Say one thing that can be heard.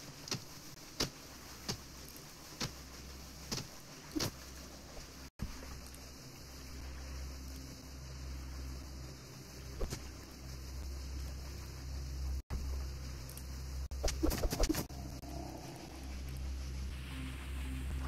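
A torch flame crackles softly.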